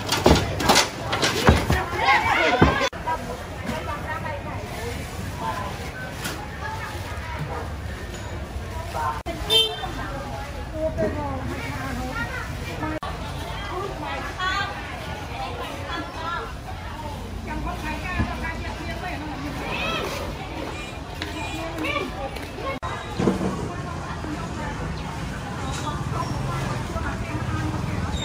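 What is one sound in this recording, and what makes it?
A busy crowd chatters all around.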